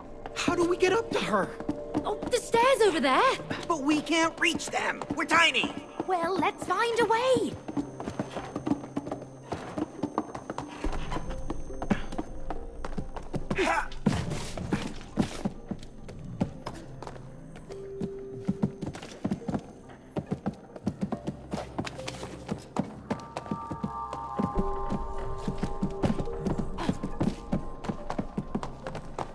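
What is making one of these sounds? Small footsteps patter quickly on wooden boards.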